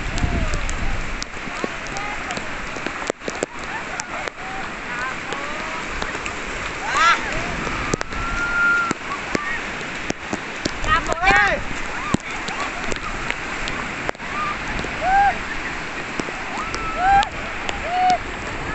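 Waves crash and wash steadily onto the shore.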